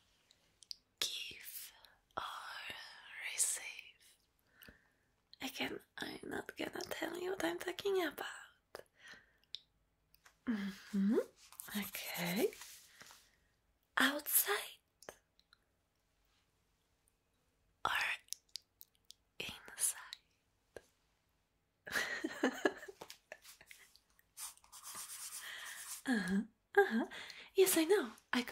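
A young woman whispers softly and close to a microphone.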